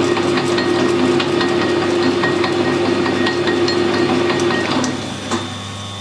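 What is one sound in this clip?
A lathe's pulleys and belts whir and rattle loudly.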